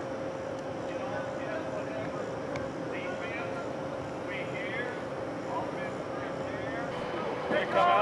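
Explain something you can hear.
A middle-aged man talks to a group of young men.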